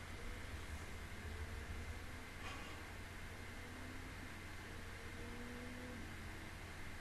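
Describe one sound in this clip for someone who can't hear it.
A young woman speaks softly into a close microphone.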